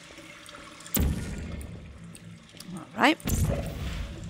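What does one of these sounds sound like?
A game gun fires with a sharp electric zap.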